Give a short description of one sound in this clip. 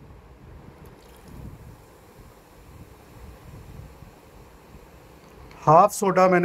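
Water pours from a bottle and splashes into liquid.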